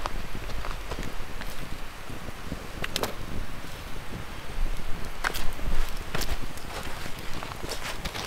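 A wood fire crackles and pops close by.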